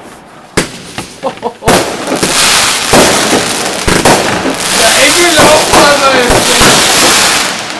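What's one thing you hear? Fireworks bang and boom loudly overhead.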